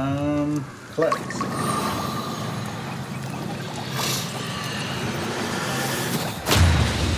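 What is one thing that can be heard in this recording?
A magical shimmering hum swells as hands glow.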